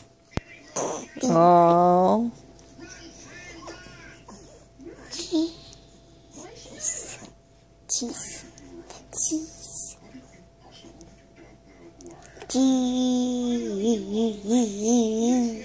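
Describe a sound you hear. A young child talks and giggles up close.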